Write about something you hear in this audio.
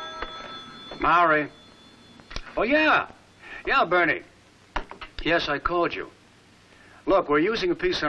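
A man speaks into a telephone in short, lively phrases.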